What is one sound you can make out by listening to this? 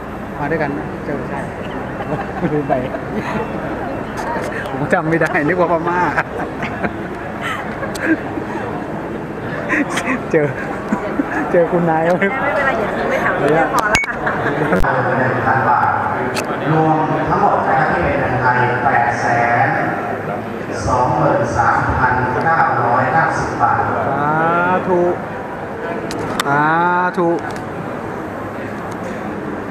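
A crowd of men and women murmurs in a large echoing hall.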